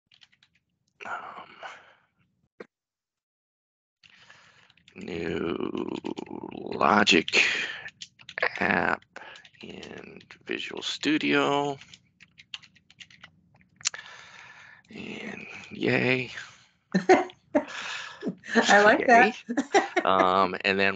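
A man talks into a headset microphone, heard over an online call.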